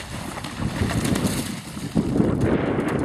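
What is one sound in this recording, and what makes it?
A horse splashes through water.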